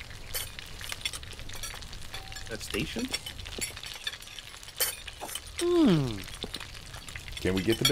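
Meat sizzles on a hot grill.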